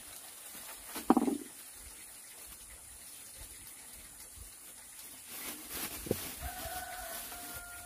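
A plastic bag crinkles and rustles in someone's hands.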